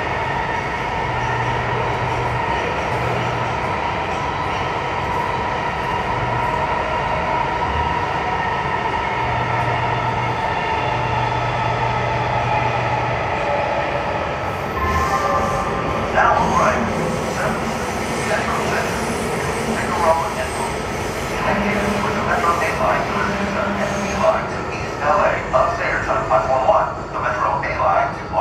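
A subway train rumbles and hums steadily through a tunnel.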